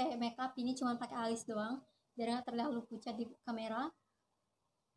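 A young woman talks with animation, close to the microphone.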